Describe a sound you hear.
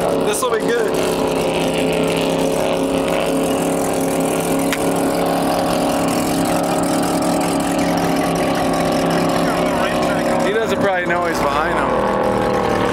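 Water splashes against a moving boat.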